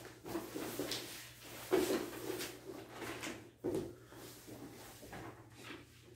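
Books shuffle and rustle on a wooden floor.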